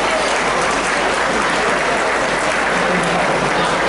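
People on a stage clap their hands.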